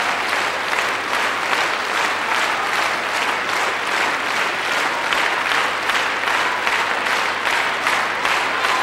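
An audience applauds loudly and steadily in a large hall.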